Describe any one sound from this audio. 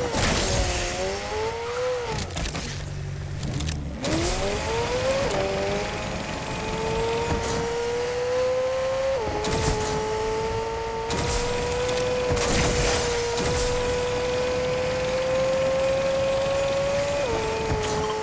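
A car engine hums steadily, its pitch rising and dropping as it shifts gears.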